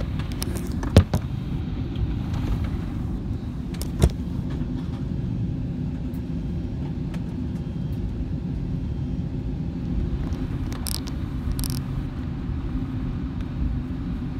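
Jet engines rumble low and steadily inside an airplane cabin as it taxis.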